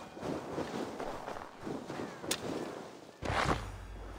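A shovel digs into snow and earth.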